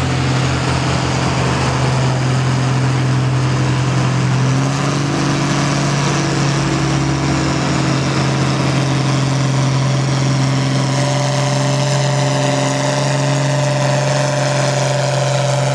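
A tractor engine roars loudly and steadily close by.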